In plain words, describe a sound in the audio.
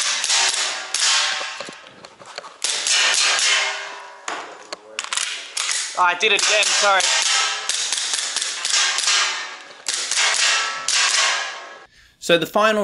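Pistol shots bang sharply and ring in a padded room.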